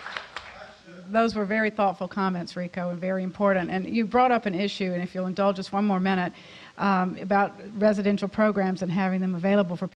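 A middle-aged woman speaks calmly into a microphone over loudspeakers.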